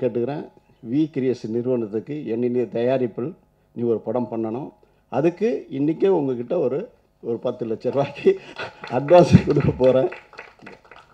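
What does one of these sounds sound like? A middle-aged man speaks calmly into a microphone, heard through loudspeakers.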